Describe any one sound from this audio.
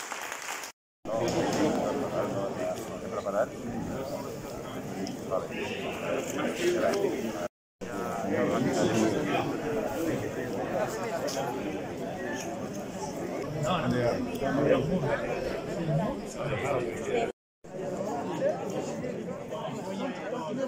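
Men talk with each other close by.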